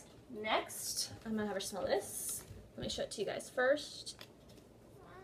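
A wrapper crinkles as it is torn open.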